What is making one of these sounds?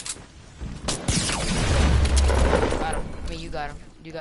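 A rocket explodes with a deep boom.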